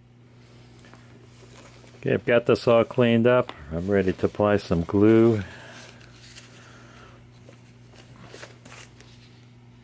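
Book pages rustle softly as they are handled.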